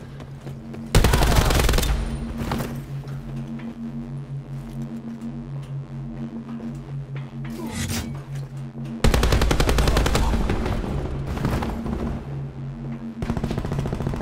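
A rifle fires loud, booming shots.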